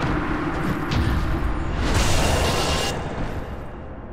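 A sword strikes in a close fight with a loud burst.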